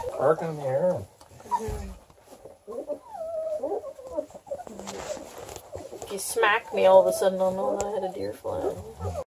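Puppies whine and squeal up close.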